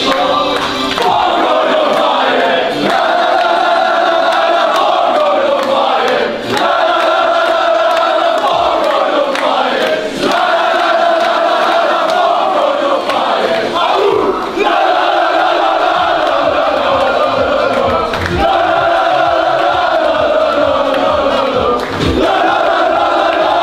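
A crowd of men claps in rhythm.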